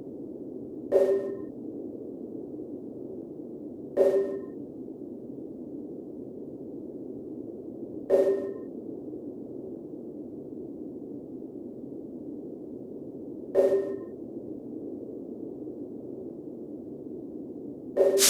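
A short soft chime sounds every few seconds.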